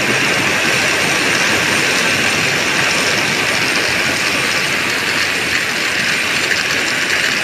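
A river rushes over rocks nearby.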